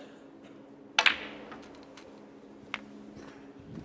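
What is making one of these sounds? Snooker balls knock together.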